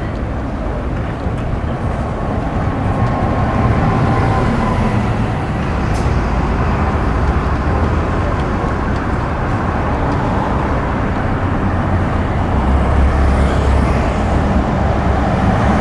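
A bus engine rumbles as the bus passes close by.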